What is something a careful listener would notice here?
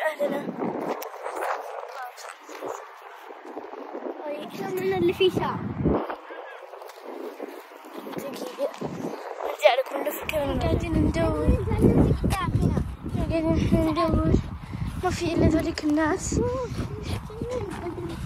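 A young girl talks with animation close to the microphone.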